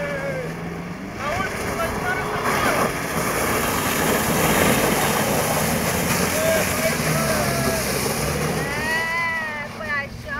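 Tyres splash through mud and water.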